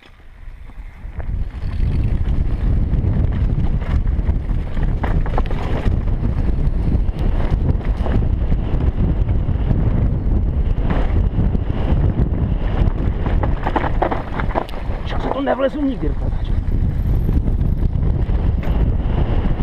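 Wind rushes loudly past a helmet as a bike speeds downhill.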